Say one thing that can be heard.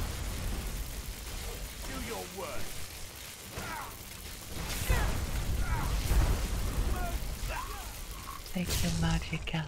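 A fire spell roars and crackles in bursts.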